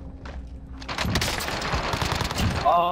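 Rapid gunfire rattles loudly.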